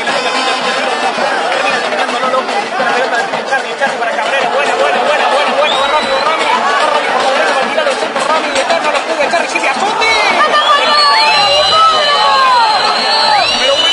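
A large crowd of spectators shouts and cheers outdoors.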